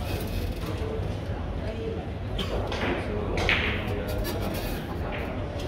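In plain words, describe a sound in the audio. Men murmur and talk quietly in the background.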